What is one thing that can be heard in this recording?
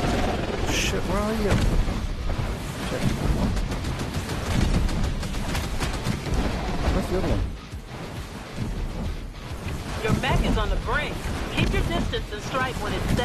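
Laser guns fire rapid zapping shots.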